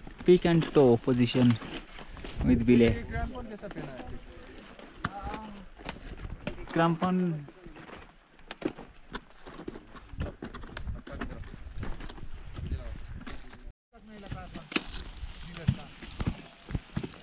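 Crampons and an ice axe scrape and knock on ice.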